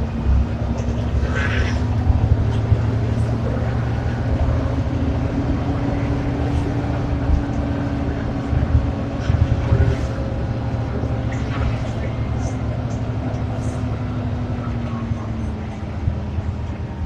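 A bus engine whines and slowly falls in pitch as the bus slows.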